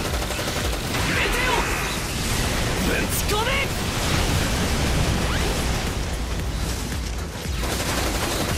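Explosions boom and blast.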